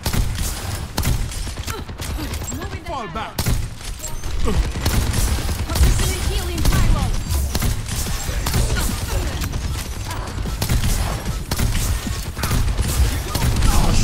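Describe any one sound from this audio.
A heavy gun fires rapid bursts of shots.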